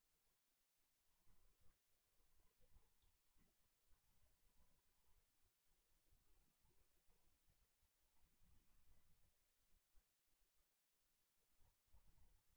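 A young woman speaks quietly and calmly into a microphone.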